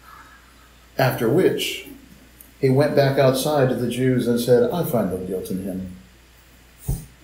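A man speaks calmly through a microphone, heard as if over an online call.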